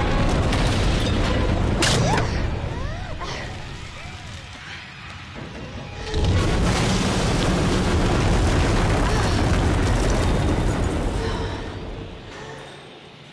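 Flames roar and crackle loudly.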